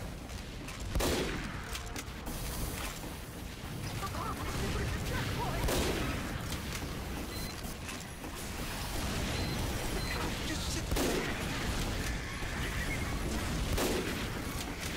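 A rifle fires loud single shots, several times.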